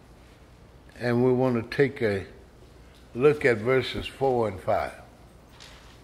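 An elderly man speaks slowly and with feeling into a microphone.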